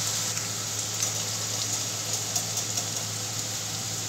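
A batter is poured into hot oil with a hiss.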